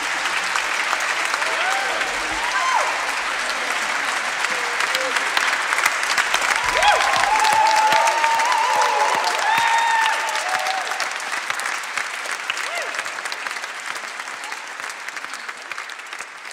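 An audience applauds loudly in a large hall, slowly fading.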